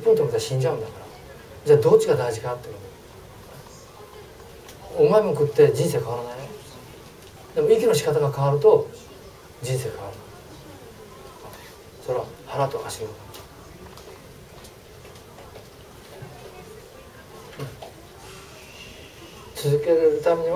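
An elderly man speaks calmly through a clip-on microphone, in short bursts with pauses.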